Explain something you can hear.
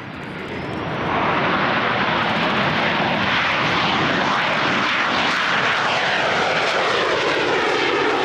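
A jet engine roars as a fighter takes off and climbs past close by.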